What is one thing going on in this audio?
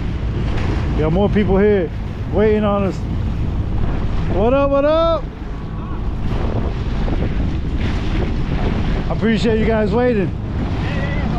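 A man calls out loudly across the water.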